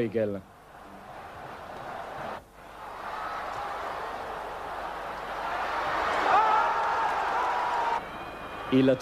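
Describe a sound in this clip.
A large stadium crowd roars, swelling louder.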